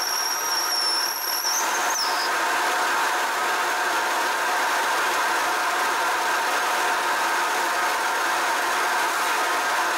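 A milling machine runs with a steady whirring hum.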